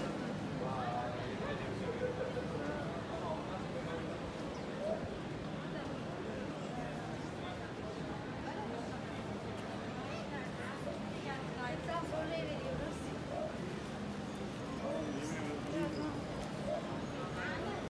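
Footsteps of many people shuffle on paving stones.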